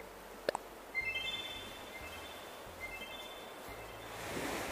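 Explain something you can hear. Soft chiming tones play from a game menu.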